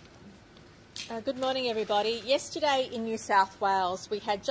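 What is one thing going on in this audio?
A woman speaks calmly into microphones, heard through a loudspeaker.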